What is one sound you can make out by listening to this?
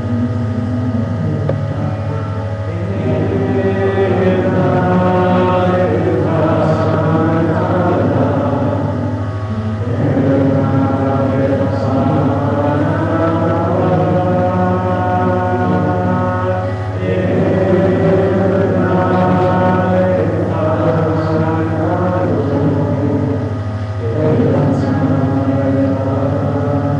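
A woman sings steadily into a microphone, amplified through loudspeakers.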